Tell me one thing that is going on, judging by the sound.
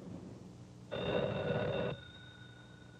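A telephone rings with a short burst.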